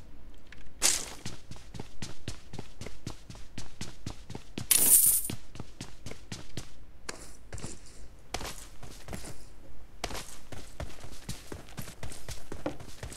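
Quick footsteps thud steadily on hard floors and then on ground.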